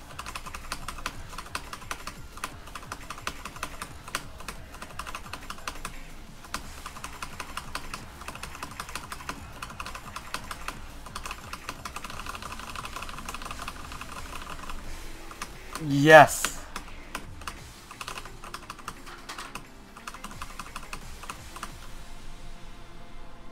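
Keyboard keys click rapidly and steadily.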